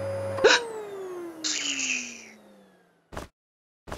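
A young woman shrieks in fright.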